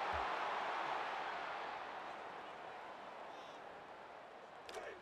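A large stadium crowd roars and slowly fades.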